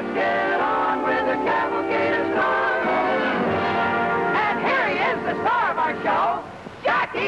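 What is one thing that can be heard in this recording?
A group of men and a woman sing together.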